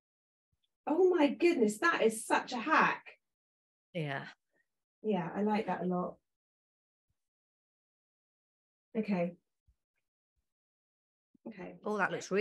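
A woman talks in bursts with animation, heard through an online call.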